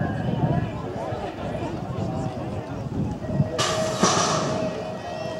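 A crowd of young riders and onlookers chatter outdoors.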